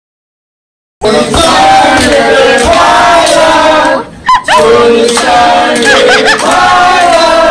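A group of young men and women sing together in a small room.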